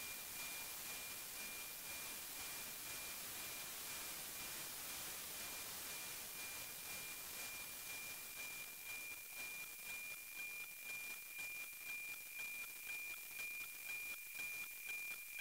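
A radio plays a steady, high-pitched whistling tone with a regular ticking beat.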